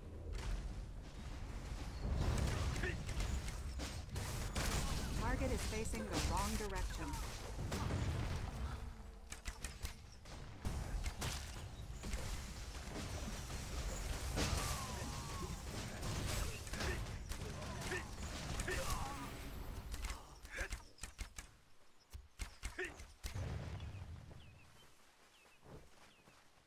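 Swords clash and spells burst in a busy fight.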